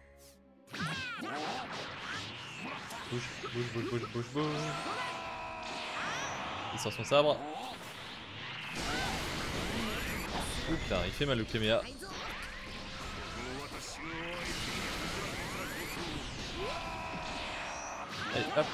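Energy blasts whoosh and crackle in rapid bursts.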